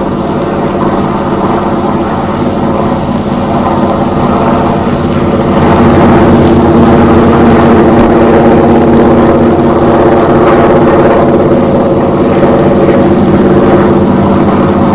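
A propeller plane's engine drones steadily and grows louder.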